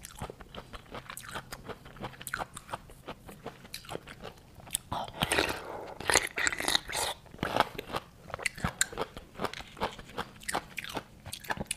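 Sauce squelches as food is torn apart.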